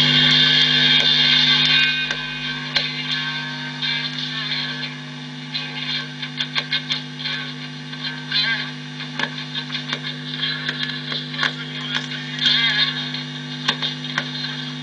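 An amplifier hums steadily.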